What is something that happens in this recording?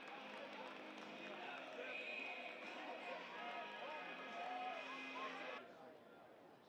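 A crowd of spectators chatters all around.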